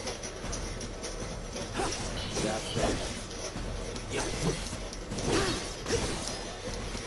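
Sword blows clash and thud in quick succession.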